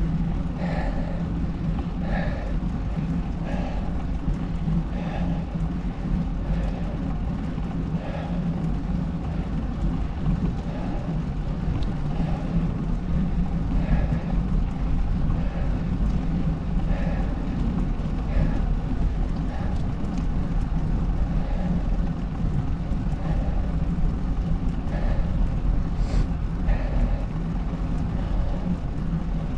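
Wheels roll and rumble steadily over rough asphalt.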